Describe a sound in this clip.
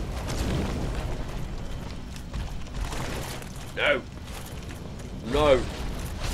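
A young man talks casually into a microphone.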